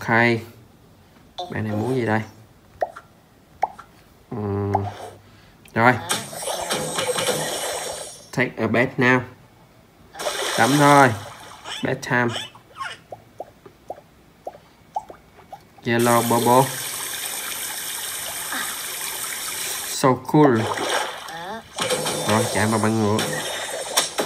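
Playful cartoon sound effects come from a tablet's small speaker.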